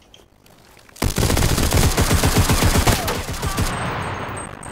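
Rapid gunfire rattles in a loud burst.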